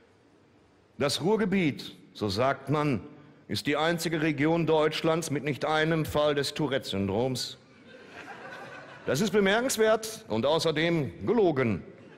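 A man reads aloud expressively into a microphone.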